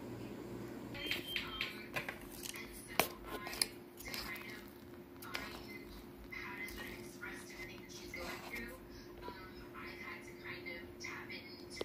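Chopsticks click against a plastic cup.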